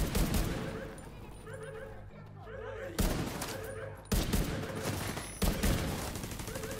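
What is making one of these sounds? A rifle fires loud shots with booming echoes.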